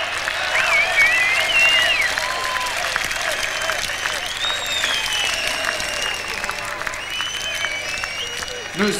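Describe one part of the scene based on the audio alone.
A large crowd cheers and claps in a big echoing hall.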